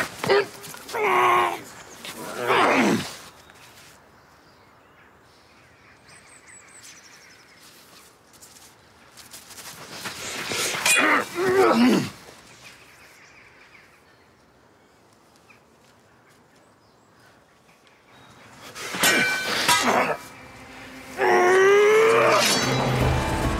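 A young man grunts and shouts with effort.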